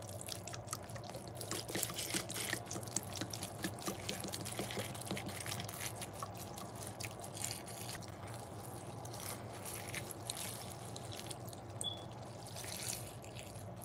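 Liquid soap squirts and drips onto wet sponges.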